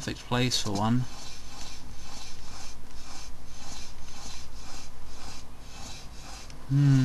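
Soft, rhythmic scuffing of someone crawling on stone.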